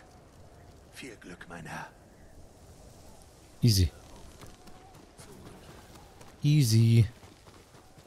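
A young man speaks briefly and with animation into a microphone close by.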